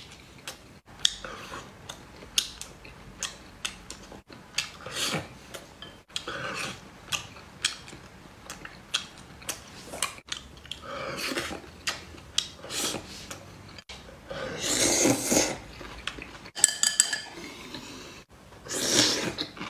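A man slurps noodles.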